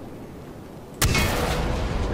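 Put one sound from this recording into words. An explosion booms suddenly close by.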